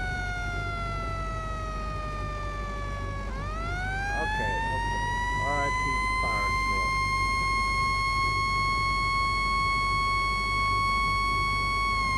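A siren wails steadily, dipping in pitch and then rising again.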